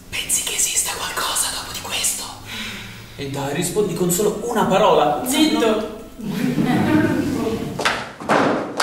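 A young man sings with emotion, close by.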